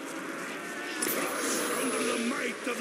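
A ray gun fires with a sharp electric zap.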